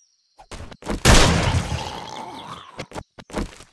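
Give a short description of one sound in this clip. A gun fires a loud shot that echoes.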